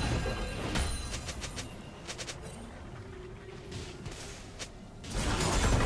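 Game sound effects of spells and attacks clash and crackle in quick bursts.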